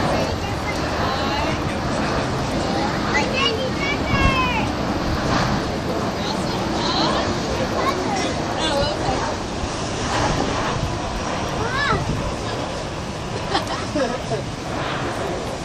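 A jet airliner roars faintly in the distance as it flies past.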